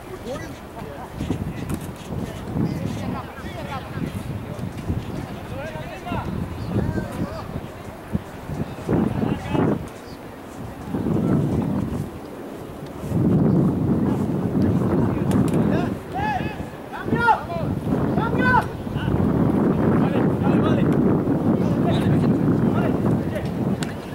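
Young men shout to each other across an open field, heard from a distance.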